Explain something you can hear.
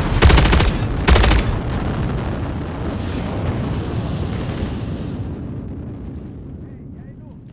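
A large gun fires heavy blasts that rumble and slowly fade.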